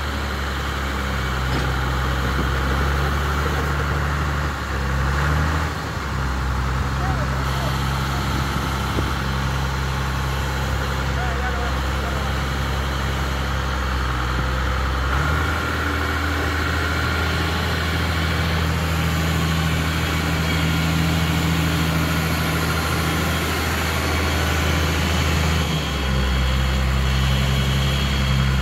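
A tractor's diesel engine rumbles steadily close by, its pitch shifting as it works.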